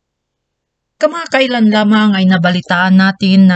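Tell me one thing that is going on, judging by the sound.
A young woman sings.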